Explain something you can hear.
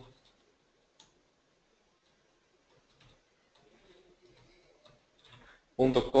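Keyboard keys click softly as someone types.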